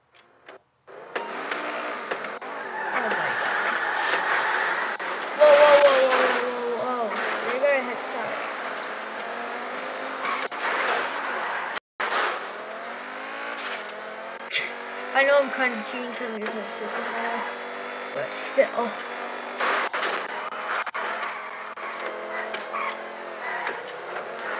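Racing car engines roar and rev up as the cars speed off.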